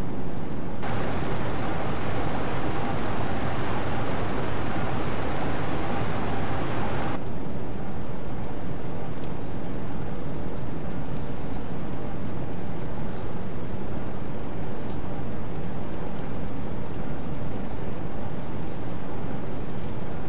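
A submarine's engine rumbles low and steadily.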